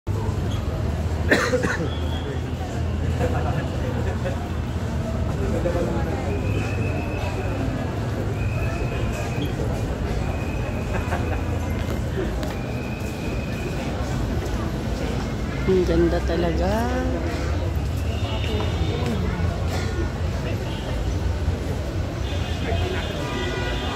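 A crowd of men and women chatter and murmur nearby.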